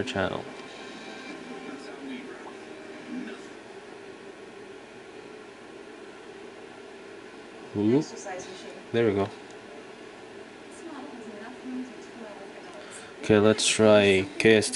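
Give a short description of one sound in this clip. A television plays sound in the room.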